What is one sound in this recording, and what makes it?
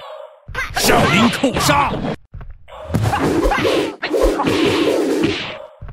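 Men shout and grunt as they fight.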